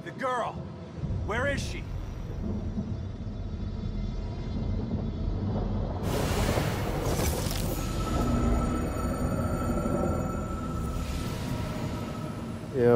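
A strong wind roars and howls.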